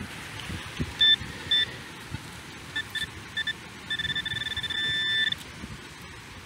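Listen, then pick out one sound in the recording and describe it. A handheld pinpointer beeps in quick high chirps, then with a steady tone.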